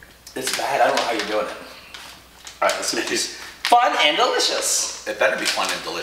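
A plastic wrapper crinkles as a man opens a packet.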